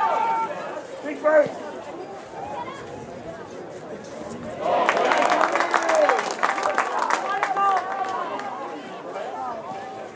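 Young men shout to each other across an open field, outdoors.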